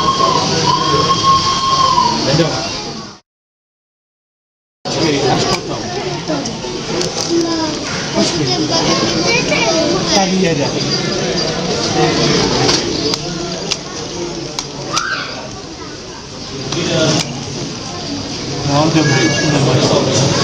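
A crowd of adults and children chatters in a busy, echoing hall.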